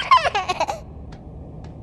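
A little girl babbles excitedly in a high voice.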